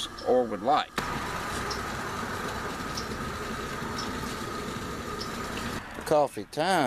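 A gas stove burner hisses steadily.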